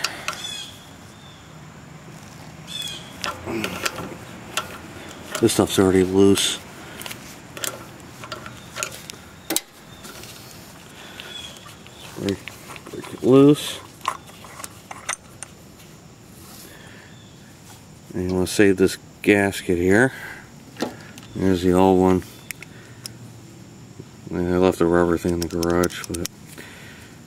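Small metal parts click and scrape as they are handled.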